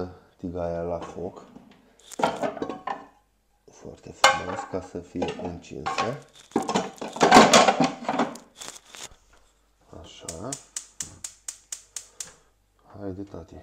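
Kitchen utensils clink against a counter.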